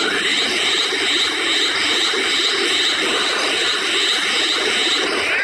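An energy aura roars and crackles steadily.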